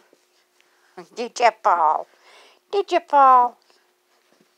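A puppy yaps and whines excitedly at close range.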